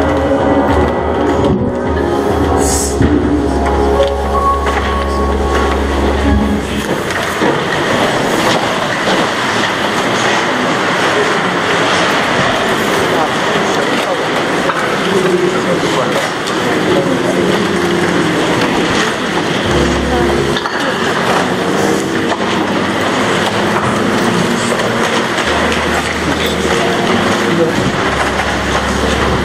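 An elderly man speaks through a microphone and loudspeakers in a large echoing hall.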